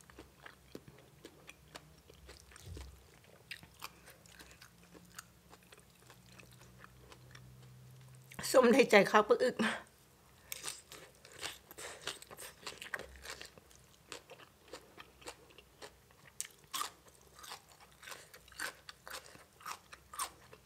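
Fingers rustle and squelch through wet food.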